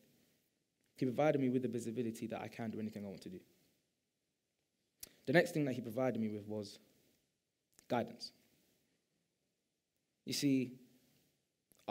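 A young man speaks calmly through a headset microphone, with pauses.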